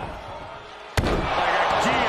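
A heavy thud lands on a wrestling mat.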